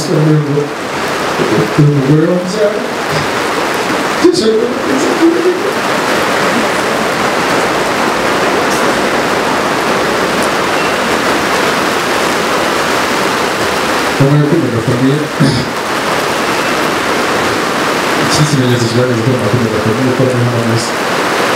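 A man speaks calmly into a microphone, heard through a loudspeaker, pausing for long stretches.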